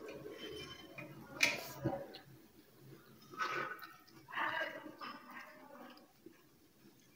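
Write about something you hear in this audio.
A young woman slurps noodles loudly.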